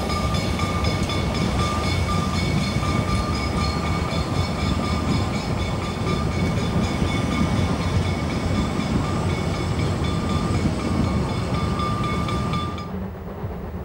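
Train wheels squeal steadily on the rails.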